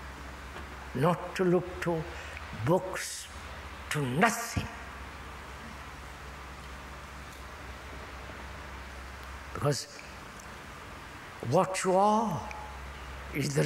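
An elderly man speaks in slow, halting phrases through a lapel microphone.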